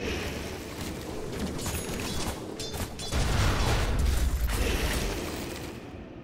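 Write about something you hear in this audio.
Game weapons clash and spells burst in a fight.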